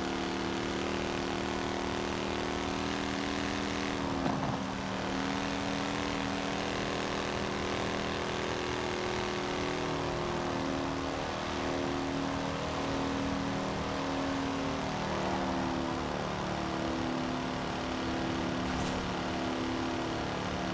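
A car engine drones steadily at high speed, its pitch shifting slightly as the gears change.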